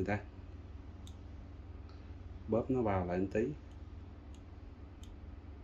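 Metal pliers click softly against a small plastic part.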